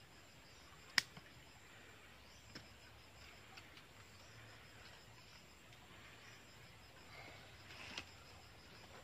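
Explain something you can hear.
Pruning shears snip through small roots with sharp clicks.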